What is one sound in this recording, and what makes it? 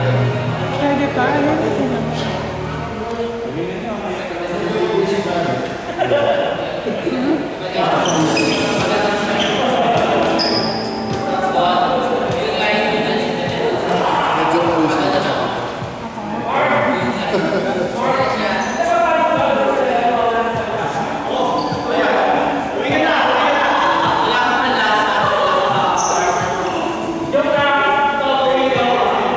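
Rackets strike a shuttlecock back and forth in a large echoing hall.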